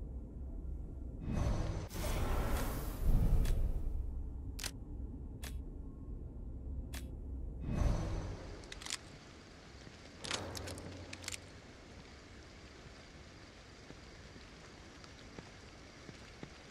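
Wind rustles through trees outdoors.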